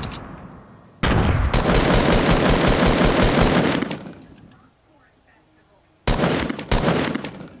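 A gun fires in rapid bursts of loud shots.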